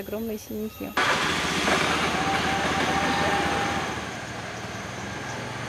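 Motor scooter engines hum and rumble nearby.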